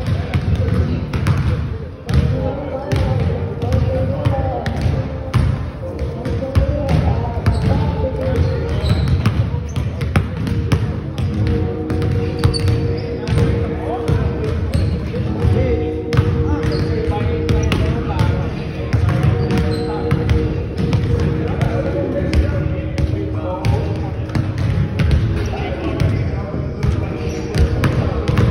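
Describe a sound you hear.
Basketballs bounce on a wooden floor, echoing in a large hall.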